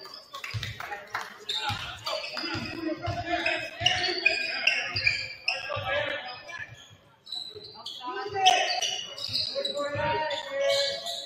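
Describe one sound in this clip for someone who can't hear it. A basketball bounces with dull thumps on the floor.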